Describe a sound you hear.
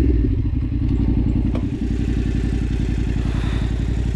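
A motorcycle engine idles steadily.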